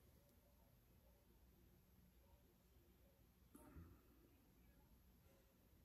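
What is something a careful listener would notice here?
An elderly man speaks quietly, close by.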